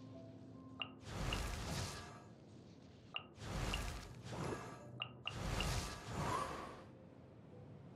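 A shimmering magical whoosh swells and fades.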